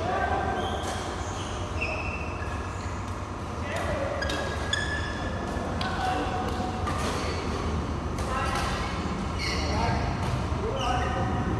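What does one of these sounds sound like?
Rackets strike shuttlecocks with sharp pops in a large echoing hall.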